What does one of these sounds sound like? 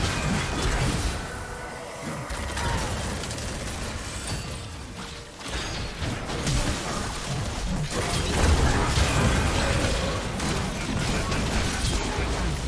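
Magic spells whoosh, crackle and burst in a busy fight.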